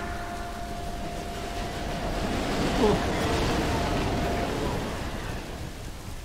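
A subway train rushes past with a loud roar.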